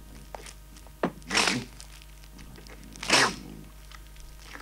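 A cartoon boy chomps loudly on a chicken leg.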